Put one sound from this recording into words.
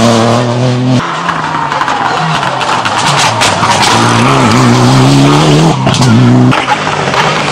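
Car engines pop and crackle sharply between gear changes.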